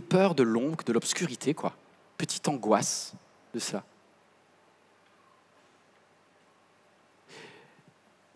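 A man speaks with feeling through a microphone in a large hall, pausing between phrases.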